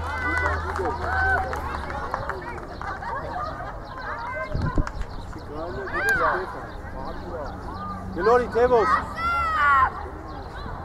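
Boys shout to each other across an open field.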